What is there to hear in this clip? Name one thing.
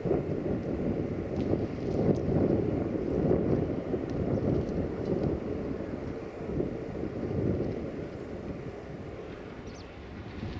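An electric locomotive rumbles slowly along the tracks.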